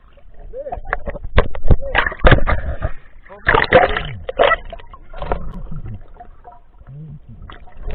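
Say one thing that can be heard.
Water splashes and gurgles right up close, muffled as if underwater.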